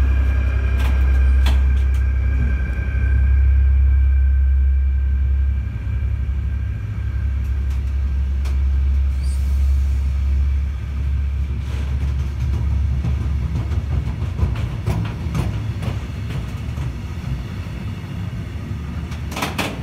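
Train wheels click and clunk over rail joints.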